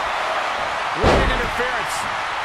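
A body slams onto a ring mat with a heavy thud.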